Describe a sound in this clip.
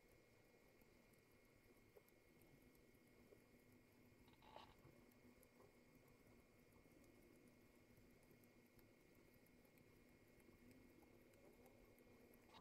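A metal crochet hook pulls loops through yarn with faint rustles and ticks.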